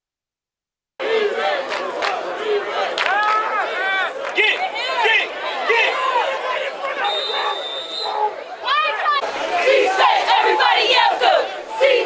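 A large crowd cheers and shouts in the distance.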